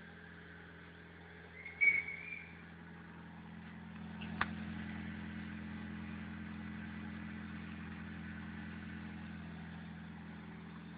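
A car engine idles with a low, steady rumble from the exhaust.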